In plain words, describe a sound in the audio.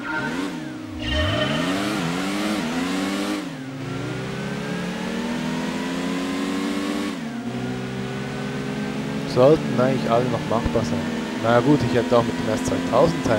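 A racing car engine accelerates hard, rising in pitch and dropping at each gear change.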